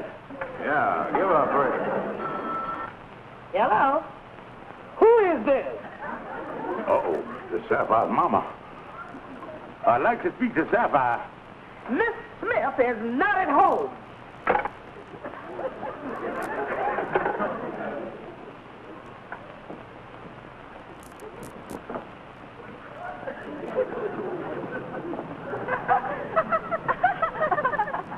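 A man speaks on a telephone.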